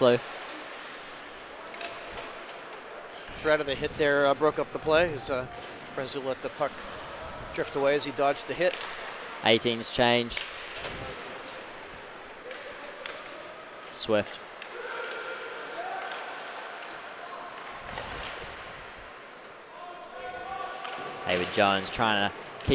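Skates scrape and hiss across ice in a large echoing arena.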